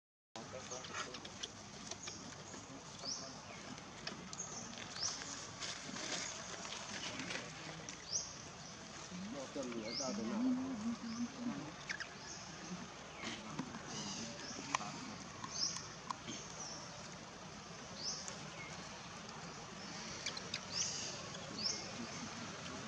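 A baby monkey squeaks with short, high cries.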